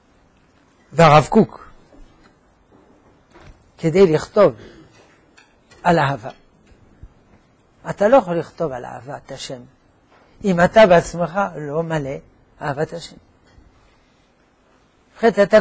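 An elderly man speaks calmly into a microphone, in short bursts with pauses.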